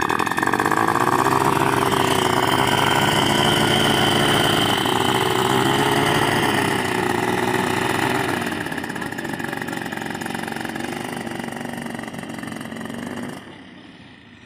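A small propeller engine drones loudly and steadily, then fades.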